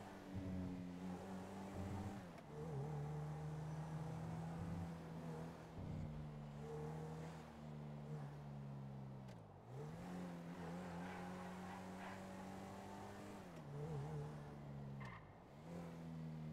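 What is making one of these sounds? A car engine accelerates through the gears.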